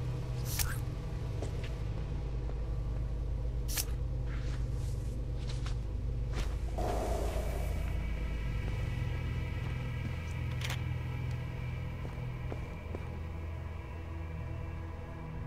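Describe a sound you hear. Footsteps tread softly on a carpeted floor.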